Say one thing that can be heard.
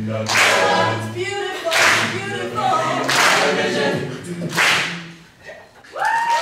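A mixed choir sings together with a driving rhythm, heard live in a large hall.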